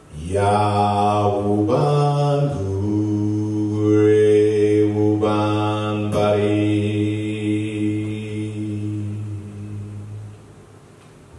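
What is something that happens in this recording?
A man chants in long, low, held notes that stop after about ten seconds.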